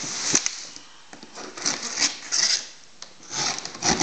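A blade slices through packing tape with a rasping crackle.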